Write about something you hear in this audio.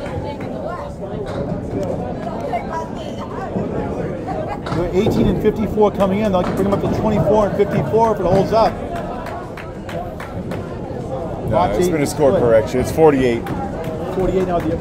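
Men talk and murmur nearby in a large, echoing room.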